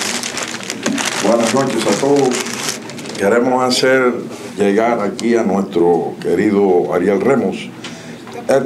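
A middle-aged man speaks with animation into a microphone over loudspeakers.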